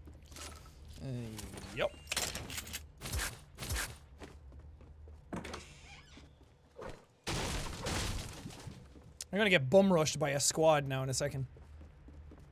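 A young man speaks with animation, close to a headset microphone.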